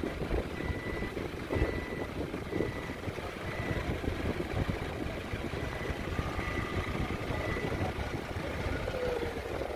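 A large electric fan whirs steadily.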